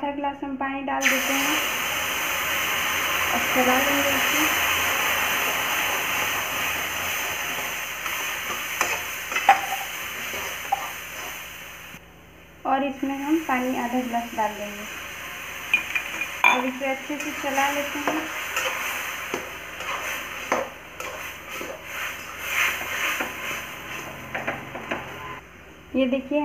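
Water pours into a hot pan and sizzles loudly.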